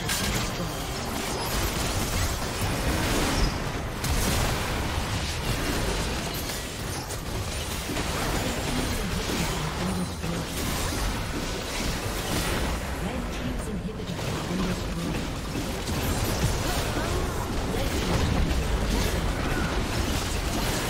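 Structures crumble and explode with heavy blasts.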